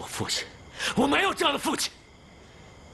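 A young man speaks forcefully and angrily.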